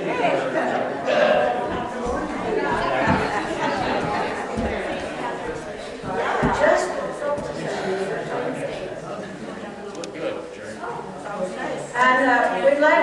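Many people chatter and talk at once in a large echoing hall.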